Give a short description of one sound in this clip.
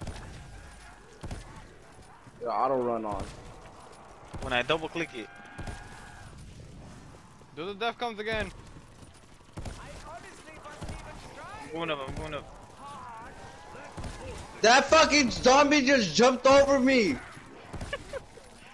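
A rifle fires sharp shots in bursts.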